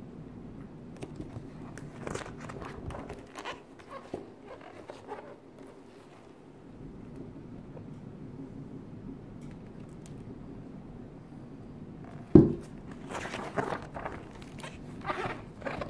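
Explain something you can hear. Paper pages rustle and flip as they are turned.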